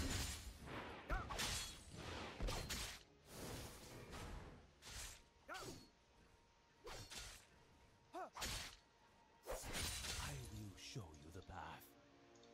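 Game sound effects of clashing and magical blasts burst repeatedly.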